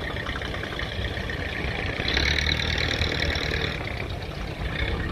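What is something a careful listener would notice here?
A boat engine chugs steadily nearby.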